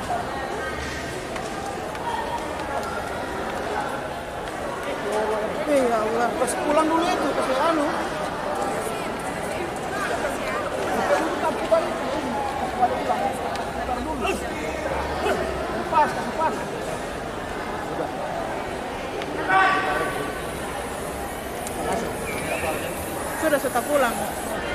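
A crowd of people talks over one another nearby, in a large echoing hall.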